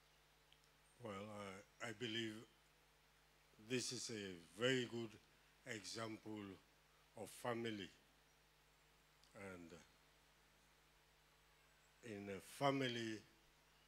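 A man speaks with emphasis into a microphone, in short phrases with pauses.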